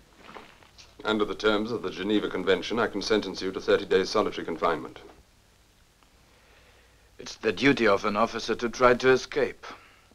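A man speaks calmly indoors, close by.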